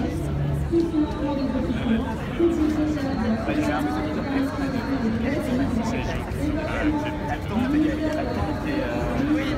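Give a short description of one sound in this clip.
A crowd of adults talks and calls out all around, close by.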